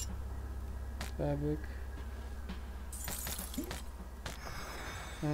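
Weapon blows land in a fight with sharp, quick thuds.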